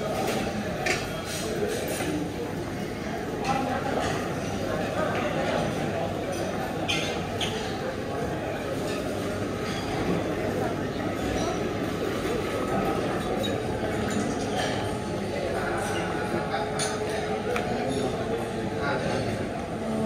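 Dishes and utensils clink now and then.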